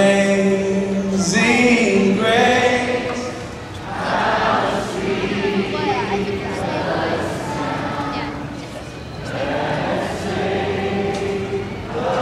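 Loud live music plays through a large hall's speakers.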